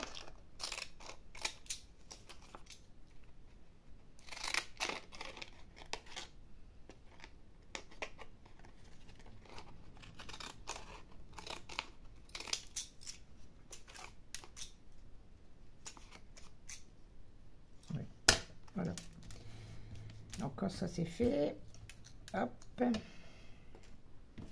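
Stiff paper rustles and crackles as it is handled.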